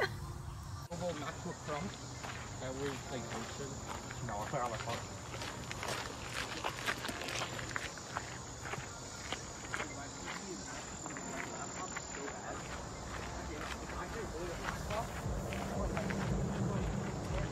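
Footsteps crunch on dry leaves and twigs.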